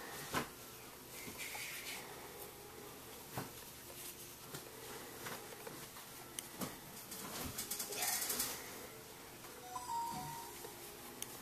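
A crochet hook pulls yarn through stitches with soft rustling and faint clicks.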